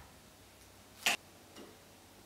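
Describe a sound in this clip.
A screwdriver turns a screw into wood with a sharp click.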